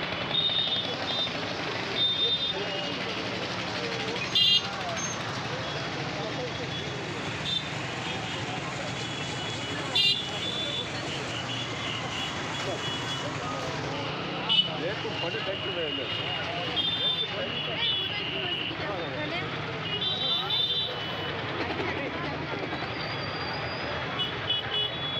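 A crowd of men talks over one another close by, outdoors.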